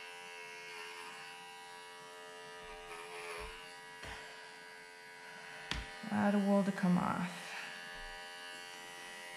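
Electric hair clippers buzz steadily up close.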